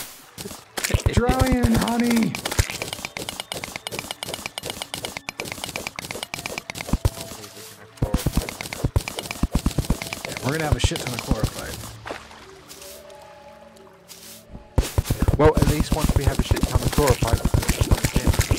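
A man talks into a microphone close up.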